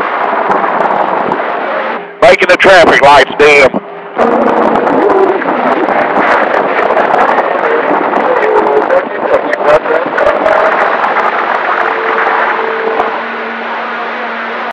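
A radio receiver hisses with static and crackle throughout.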